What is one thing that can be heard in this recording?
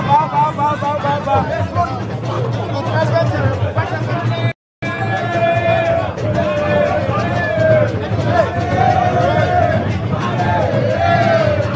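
A crowd of people chatters and shouts excitedly nearby.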